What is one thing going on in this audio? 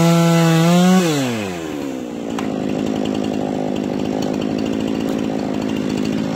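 A chainsaw engine drops back and idles.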